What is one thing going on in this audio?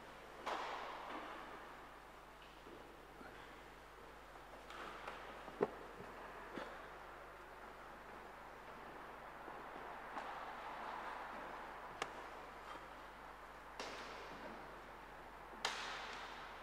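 Objects are set down with sharp knocks that echo through a large, reverberant hall.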